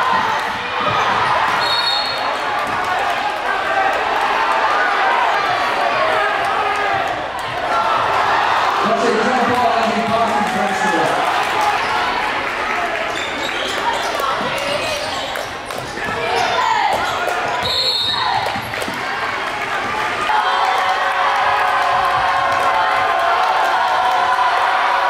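A crowd cheers and chatters in an echoing gym.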